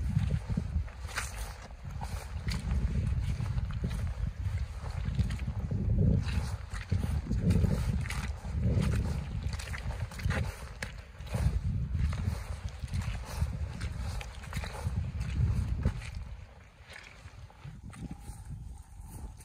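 Boots squelch and crunch on wet, muddy ground with steady footsteps.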